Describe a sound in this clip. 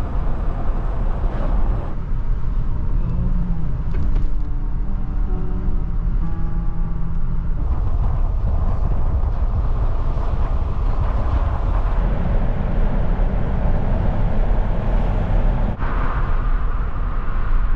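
A car engine hums with a steady low rumble of tyres on the road.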